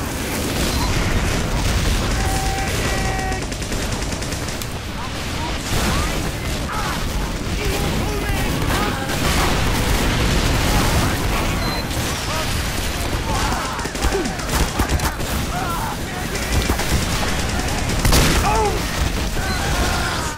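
Gunfire and explosions crackle in a video game.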